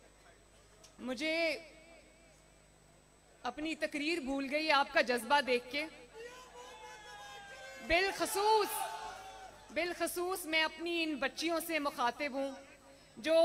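A young woman speaks forcefully into a microphone over loudspeakers.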